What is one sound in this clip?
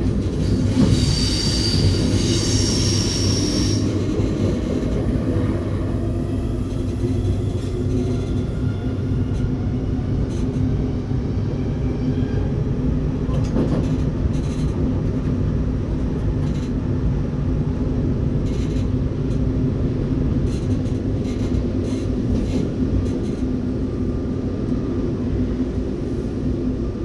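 A train rumbles steadily along the tracks through a tunnel.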